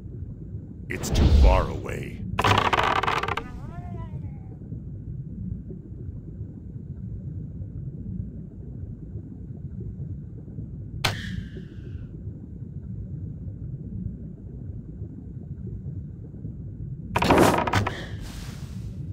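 Magic spells burst and whoosh loudly in short bursts.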